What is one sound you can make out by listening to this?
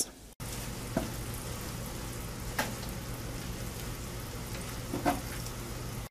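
Metal tongs click against a baking tray.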